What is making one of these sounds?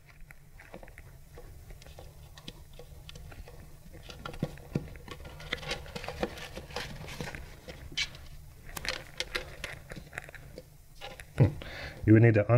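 Metal parts clink and scrape as hands work on them.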